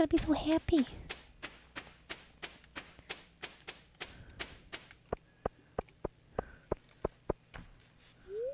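Footsteps tap quickly and evenly on the ground.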